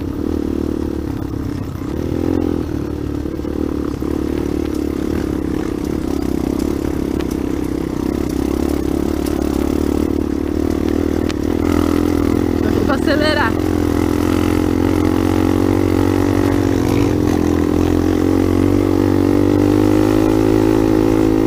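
A dirt bike engine runs as the bike rides along.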